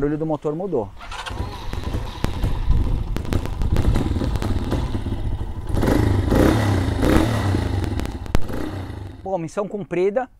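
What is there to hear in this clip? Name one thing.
A motorcycle engine idles with a steady low rumble and revs up.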